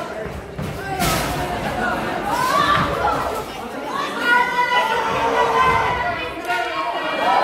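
Wrestlers' bodies thump against a ring mat.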